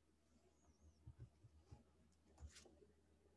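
Small objects knock and tap as they are handled close by.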